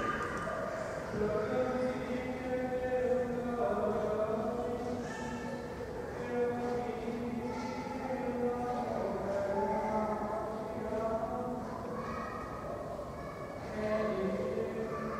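A man chants slowly in a sustained voice, echoing in a large hall.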